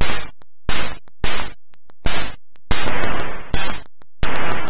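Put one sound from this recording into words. A video game explosion crackles with harsh noise.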